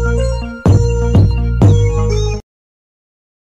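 Loud pop music with a heavy beat plays.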